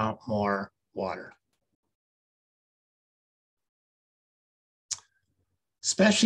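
A man speaks calmly through an online call, with long pauses.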